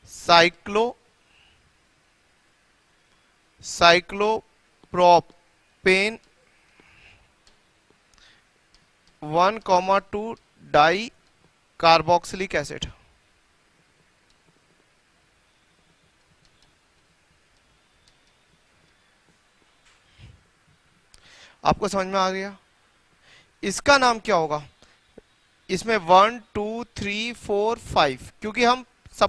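A man speaks clearly in bursts, explaining, close to a microphone.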